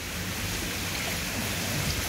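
A hand splashes through water.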